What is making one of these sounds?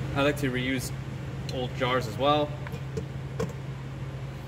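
A glass jar clunks down onto a metal pot.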